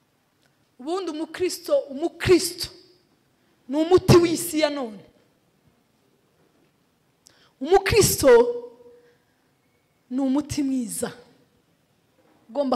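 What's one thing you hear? A woman speaks calmly into a microphone in short phrases with pauses.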